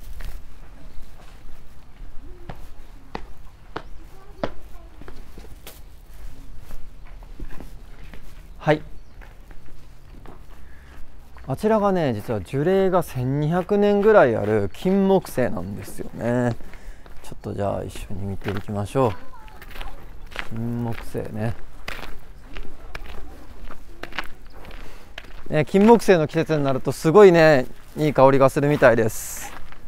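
Footsteps click on stone and crunch on gravel.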